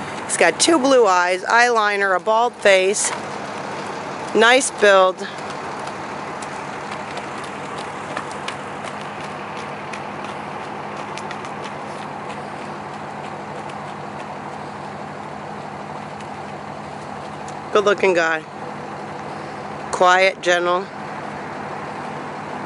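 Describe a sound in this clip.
Hooves clop steadily on gravel as a horse trots.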